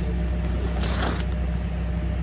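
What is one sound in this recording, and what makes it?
Paper sacks rustle and crinkle as they are handled.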